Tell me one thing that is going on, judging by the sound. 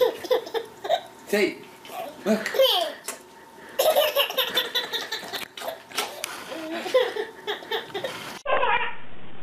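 A baby laughs loudly and happily close by.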